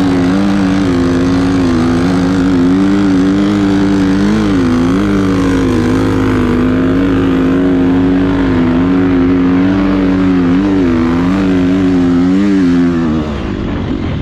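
A motorcycle engine drones loudly and steadily up close.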